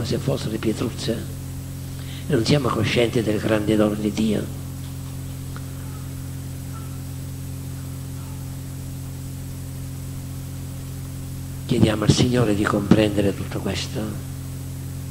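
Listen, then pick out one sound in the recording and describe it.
An elderly man speaks calmly into a microphone, with long pauses.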